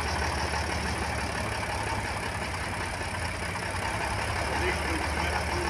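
A tractor engine idles with a steady low rumble nearby.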